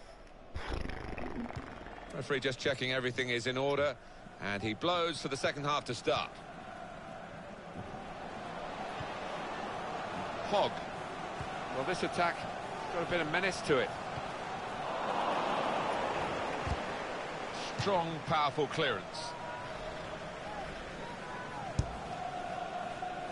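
A stadium crowd murmurs and cheers steadily, swelling for a moment.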